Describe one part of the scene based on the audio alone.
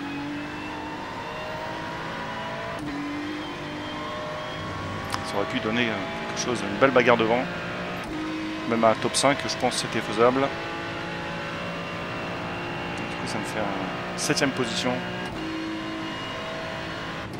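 A racing car engine drones steadily and revs sharply up and down with gear changes.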